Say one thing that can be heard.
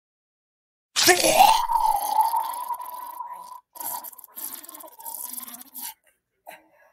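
A boy retches and vomits loudly.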